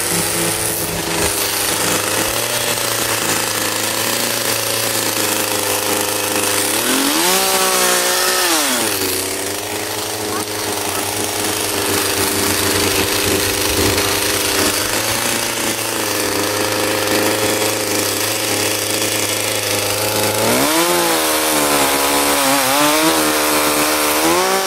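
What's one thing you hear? A chainsaw engine runs steadily and now and then revs up and down loudly.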